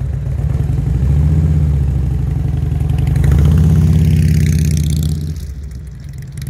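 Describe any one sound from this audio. A motorcycle engine revs up and roars past close by.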